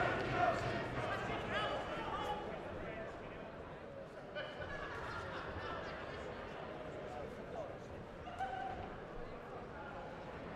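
Punches thud on boxing gloves.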